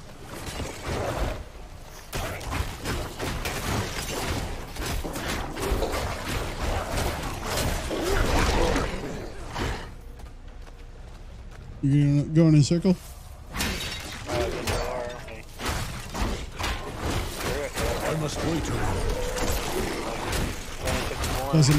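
Weapons clash and strike monsters in rapid bursts.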